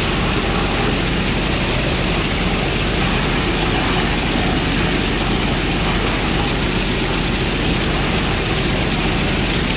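Water sprays hard from a hose and splashes onto wet sand.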